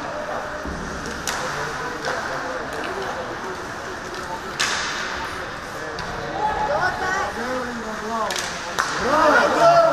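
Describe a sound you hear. Skates scrape and hiss on ice in a large echoing rink.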